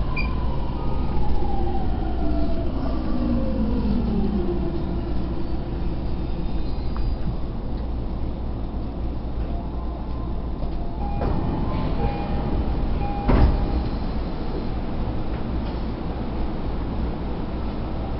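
A vehicle rumbles steadily as it moves along.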